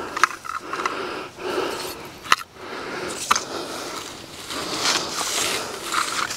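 A rake scrapes and scratches over dry dirt.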